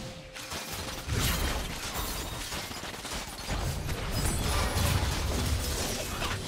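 Spell effects whoosh and crackle in a fast fight.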